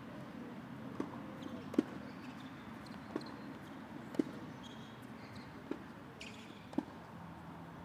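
Rackets strike a tennis ball back and forth in a rally, outdoors.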